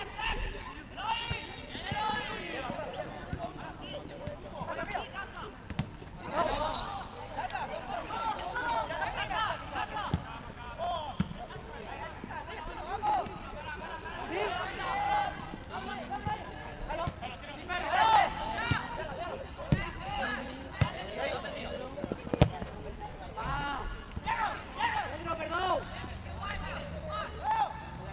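A football thuds when kicked.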